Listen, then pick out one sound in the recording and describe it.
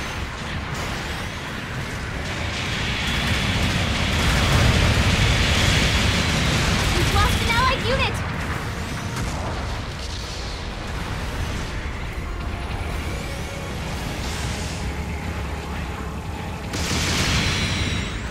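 Jet thrusters roar.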